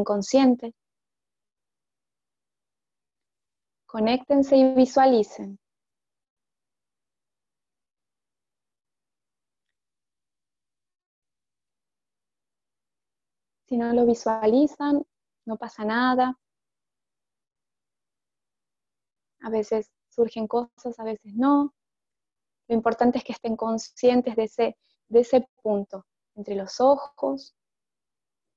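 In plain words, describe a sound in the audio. A woman speaks calmly and slowly into a headset microphone, with long pauses.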